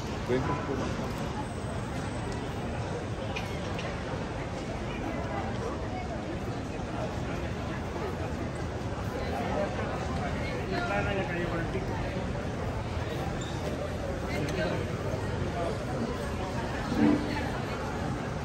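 A crowd of people talks and murmurs nearby, outdoors.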